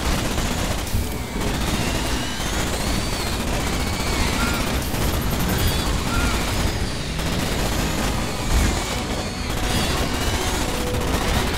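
Giant insects screech and chitter.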